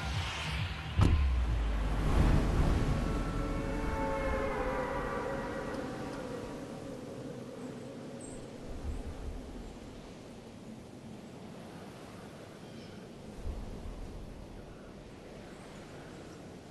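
Wind rushes past during a fast fall and slowly fades.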